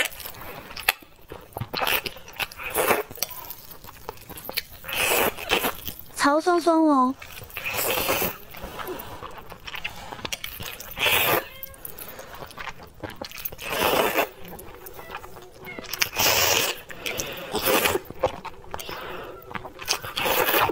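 A young woman chews noodles with wet smacking sounds.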